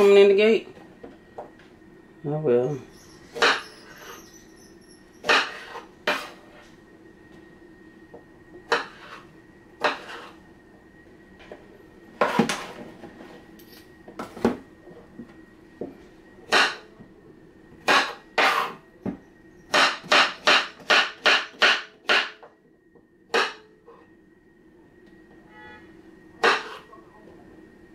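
A knife cuts through squash with sharp taps on a cutting board.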